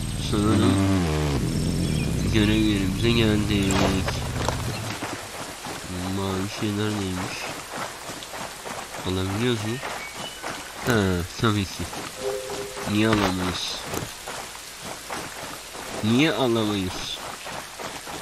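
A young man talks with animation into a headset microphone, close by.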